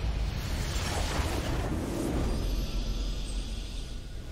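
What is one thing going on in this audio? A triumphant victory fanfare swells.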